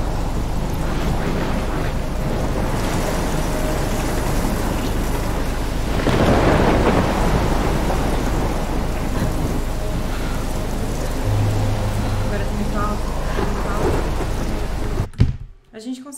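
Heavy rain pours down steadily, then cuts off abruptly.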